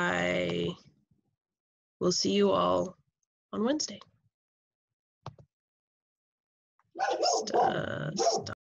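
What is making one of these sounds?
A young woman speaks calmly, close to a microphone as if in an online lecture.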